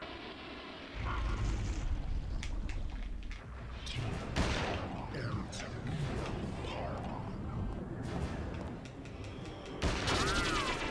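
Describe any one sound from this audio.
Heavy footsteps of a giant creature thud on the floor.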